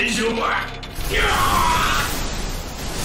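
A man screams with strain.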